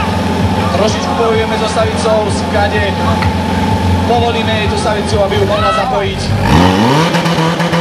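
A portable fire pump engine runs and revs.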